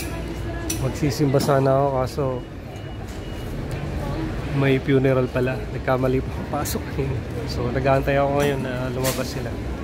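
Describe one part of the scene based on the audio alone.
A crowd's voices carry across a city street.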